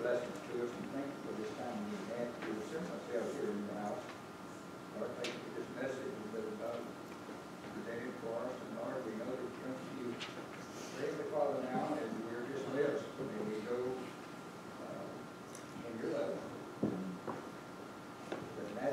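A man speaks calmly and steadily, heard through a microphone in a large echoing hall.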